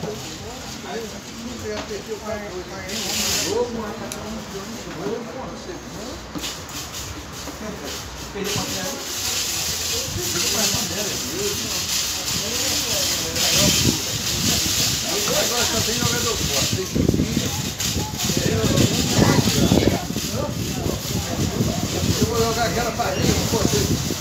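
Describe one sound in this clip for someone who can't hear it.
Men talk nearby in a relaxed, chatty way.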